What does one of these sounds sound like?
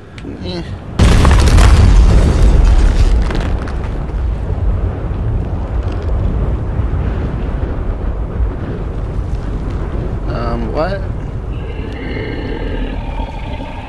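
Waves wash and roll across open water.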